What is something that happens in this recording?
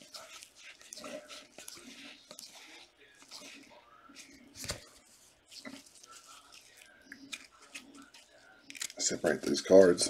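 Trading cards rustle and slide against each other in gloved hands.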